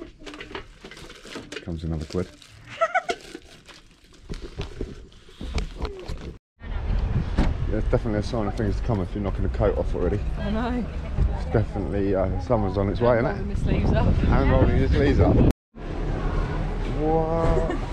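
A young woman talks and laughs nearby.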